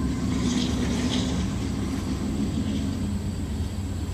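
A small puppy scampers and rustles through grass.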